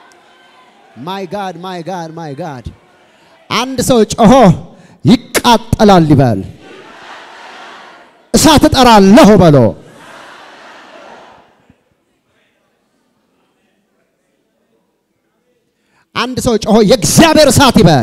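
A man preaches loudly and with passion through a microphone in a large echoing hall.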